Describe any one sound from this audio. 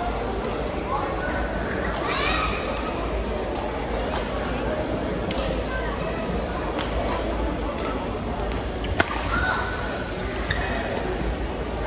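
Badminton rackets strike a shuttlecock in a rally.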